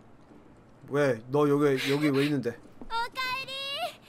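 A young woman calls out brightly in a game voice.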